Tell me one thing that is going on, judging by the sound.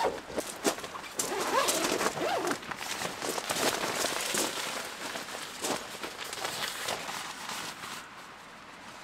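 Tent fabric rustles and flaps.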